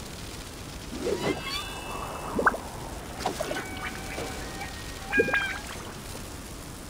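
A magical orb chimes and crackles as a sword strikes it.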